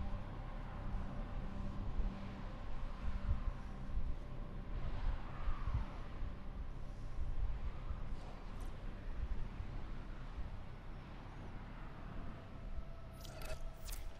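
A spaceship engine hums with a low, steady rumble.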